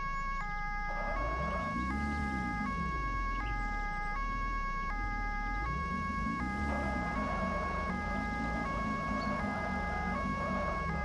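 Other vehicles rumble past close by.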